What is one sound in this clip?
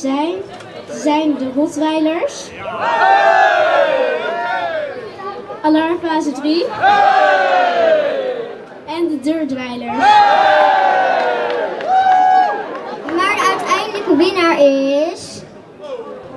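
A young girl speaks with animation through a microphone over loudspeakers outdoors.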